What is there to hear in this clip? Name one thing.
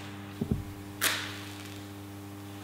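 A match strikes and flares up with a short hiss.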